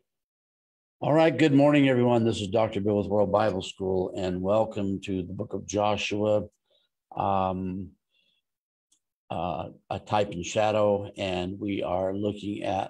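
An older man speaks calmly into a close microphone over an online call.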